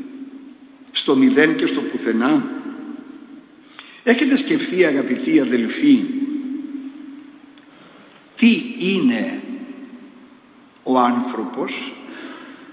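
An elderly man speaks calmly into a microphone in an echoing room, pausing between phrases.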